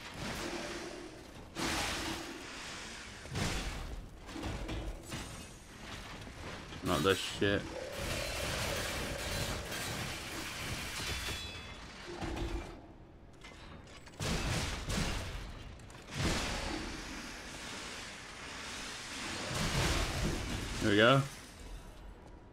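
Heavy metal blades clash and clang in a fight.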